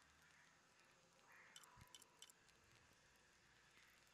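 Soft menu clicks sound as a selection moves.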